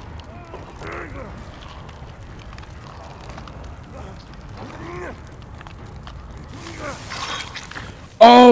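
A man grunts and groans with strain.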